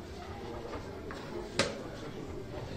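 A chess piece is set down on a wooden board with a light knock.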